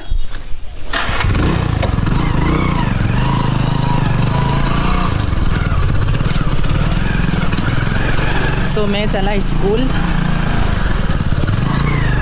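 A motorcycle engine runs with a steady low rumble.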